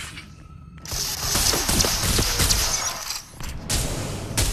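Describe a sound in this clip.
Two guns fire in rapid bursts.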